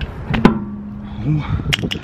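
A wrench clicks as it tightens the wheel bolts.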